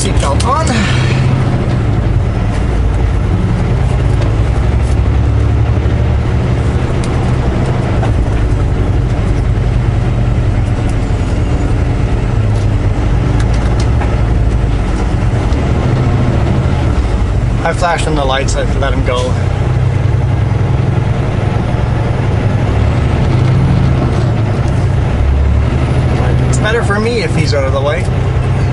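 A vehicle engine rumbles steadily from inside the cab.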